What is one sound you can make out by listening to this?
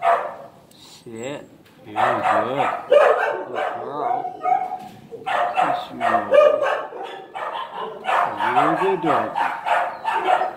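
A dog whimpers softly.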